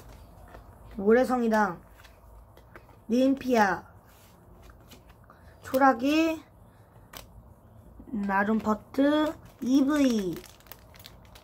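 A child speaks nearby in short, animated bursts.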